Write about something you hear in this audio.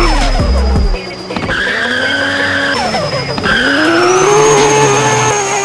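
Tyres screech on pavement.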